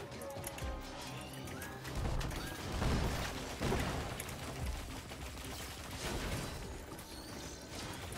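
Game guns fire rapid shots.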